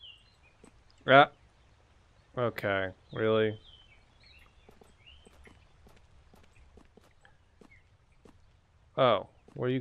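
Footsteps crunch softly on a dirt path.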